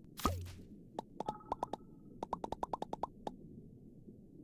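Short soft blips chirp in quick succession.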